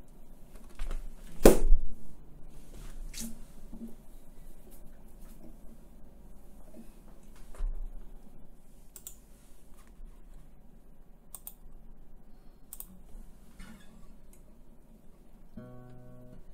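An acoustic guitar is strummed softly.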